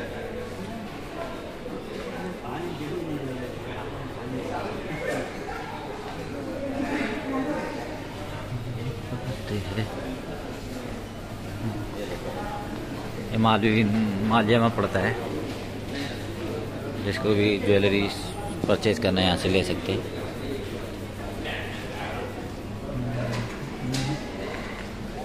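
People chat in the background of an echoing indoor hall.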